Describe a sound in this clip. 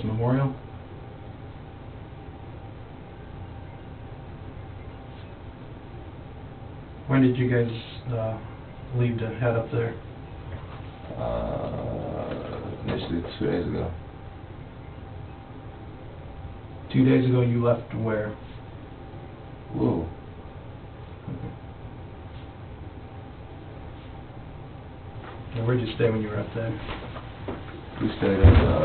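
A man speaks quietly in a small room, heard through a ceiling microphone.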